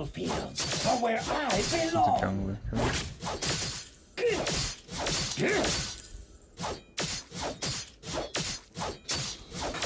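Game combat effects clash and zap in quick bursts.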